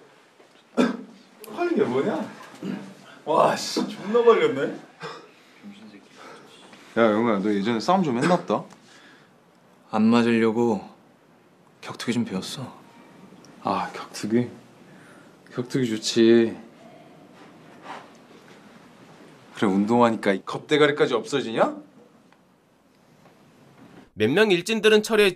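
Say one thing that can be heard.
A young man speaks in a low, taunting voice, close by.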